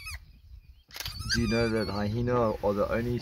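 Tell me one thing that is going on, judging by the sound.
An adult hyena groans low.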